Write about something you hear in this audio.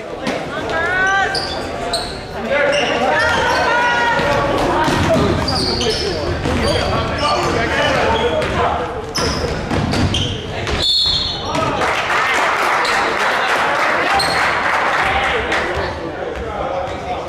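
A crowd of spectators cheers and shouts in a large echoing gym.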